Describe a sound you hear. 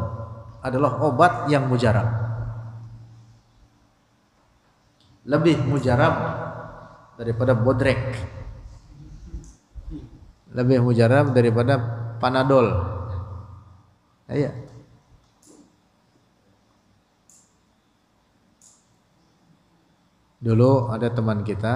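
A young man speaks calmly into a close microphone, in phrases with pauses.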